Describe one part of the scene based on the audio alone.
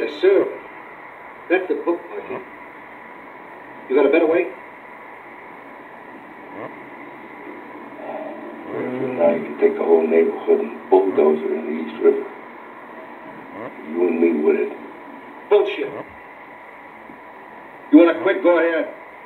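A middle-aged man speaks tensely, heard through a television speaker in a room.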